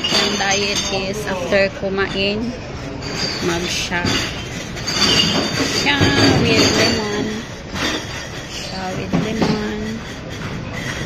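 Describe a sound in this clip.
A young woman talks calmly close to a microphone.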